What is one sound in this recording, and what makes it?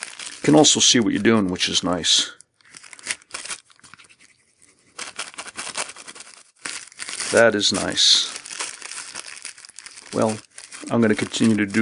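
A plastic bag crinkles close by.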